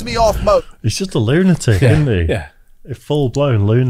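Men laugh close to microphones.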